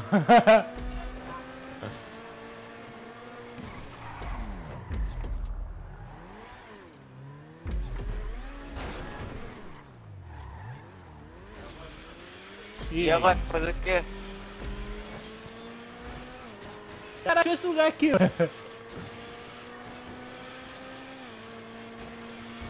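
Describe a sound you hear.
A sports car engine accelerates and shifts up through the gears.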